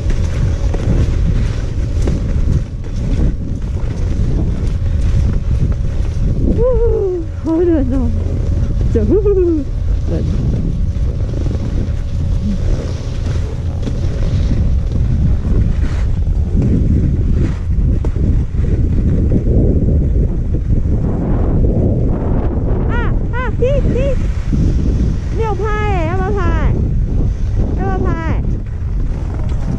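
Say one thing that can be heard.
Skis hiss and scrape over snow.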